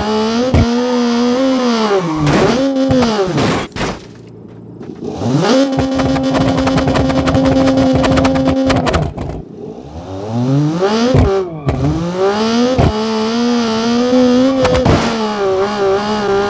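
A car engine roars, revving up and down as gears change.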